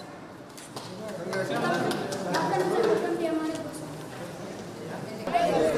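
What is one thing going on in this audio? A crowd of adults chatter nearby.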